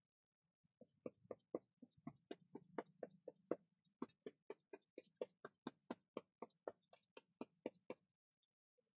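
A paintbrush dabs onto paper with soft, quick taps.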